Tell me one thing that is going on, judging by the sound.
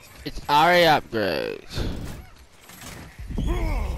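An axe hacks into thick vines.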